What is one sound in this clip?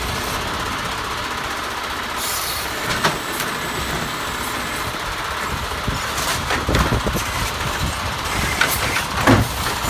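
A hydraulic arm whines as it lifts and tips a cart.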